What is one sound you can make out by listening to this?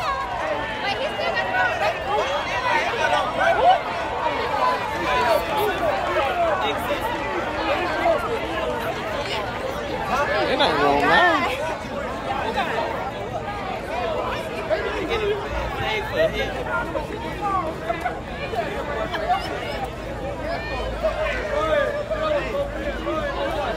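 A crowd of players and spectators chatters and shouts nearby outdoors.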